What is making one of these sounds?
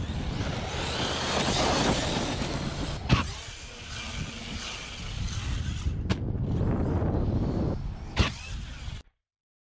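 A small electric motor whines.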